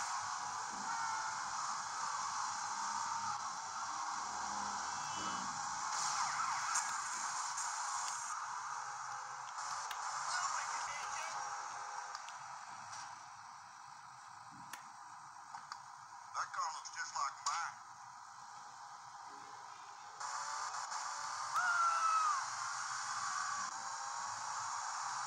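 Thumbs click on game console buttons.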